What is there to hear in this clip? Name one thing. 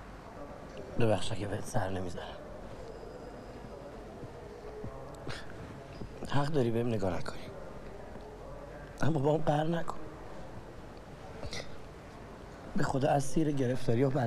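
A young man speaks close by in short, pleading bursts.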